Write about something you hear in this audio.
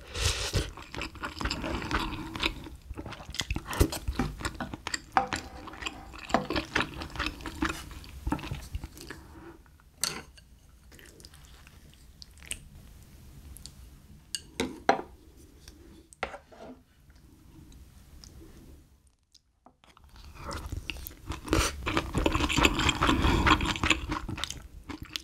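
A young woman chews and slurps food loudly up close.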